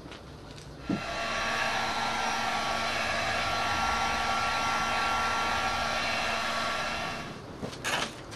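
A heat gun blows with a steady whirring roar.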